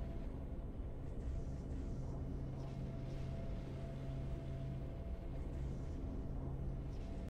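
Low, steady game music plays.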